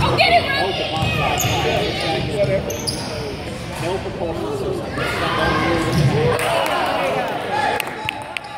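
Young children shout and cheer loudly in a large echoing gym.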